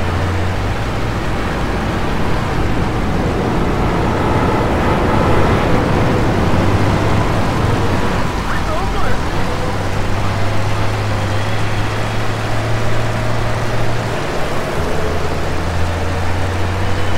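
Rain hisses down steadily.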